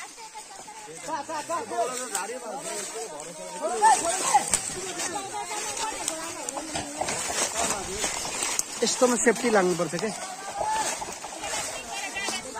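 A man talks while moving through brush.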